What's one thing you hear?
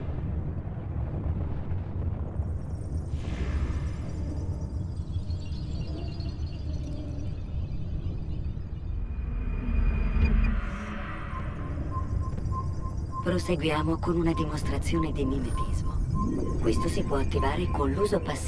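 Wind roars steadily outdoors.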